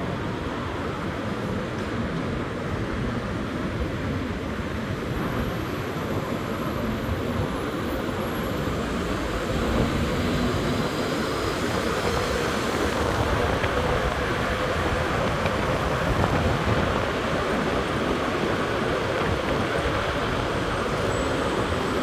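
Wind rushes loudly past a moving vehicle.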